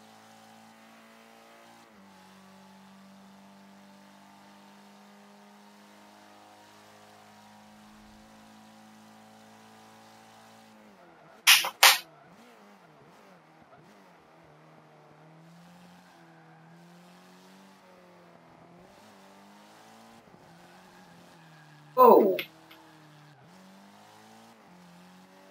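A car engine hums and revs steadily as it races.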